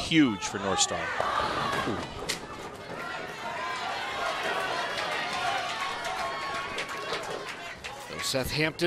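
A crowd cheers and murmurs in a large hall.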